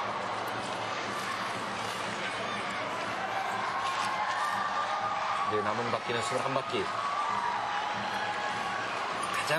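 A crowd cheers steadily in a large echoing arena.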